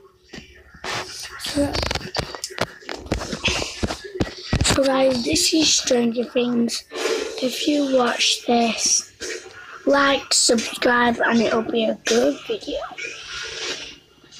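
A boy speaks with animation, close to the microphone.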